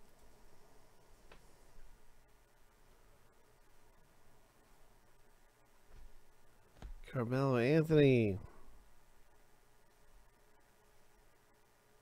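Trading cards rustle and slide against each other.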